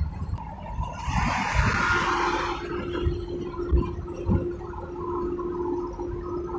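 A car engine hums steadily inside the cabin.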